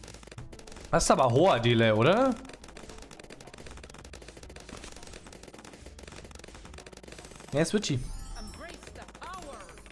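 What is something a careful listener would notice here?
Small balloons pop in quick succession.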